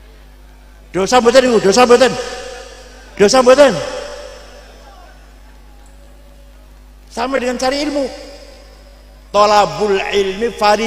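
An elderly man speaks slowly and deliberately into a microphone, with pauses and a slight echo.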